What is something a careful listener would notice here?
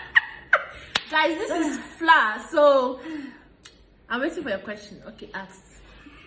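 A woman laughs and talks excitedly close by.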